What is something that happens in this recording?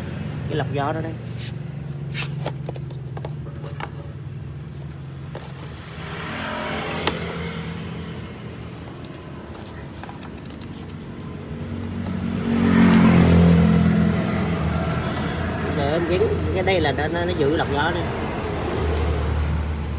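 Plastic parts knock and click as hands fit a filter cover.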